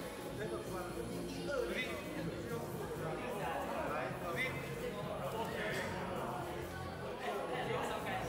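Voices of many people chatter throughout a large echoing hall.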